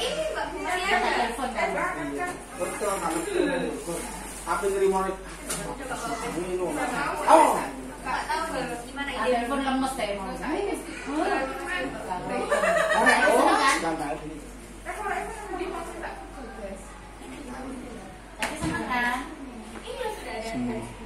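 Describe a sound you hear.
Several women talk and chat nearby.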